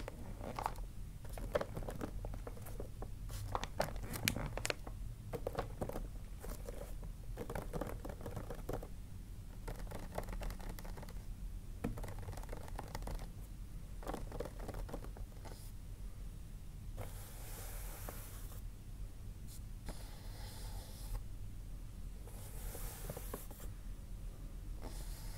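Fingernails tap and scratch on wrapped gift boxes.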